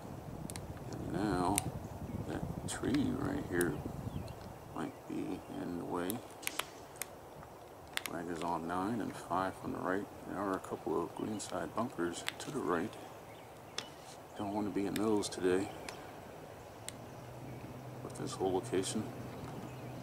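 A man talks casually outdoors, close by.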